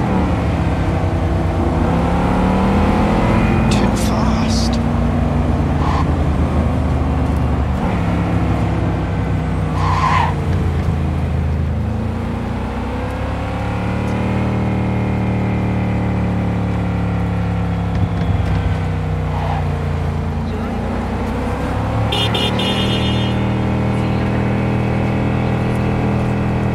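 A car engine hums and revs up and down as the car speeds along.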